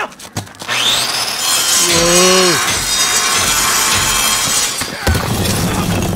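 A power tool grinds against metal with a loud, shrill screech.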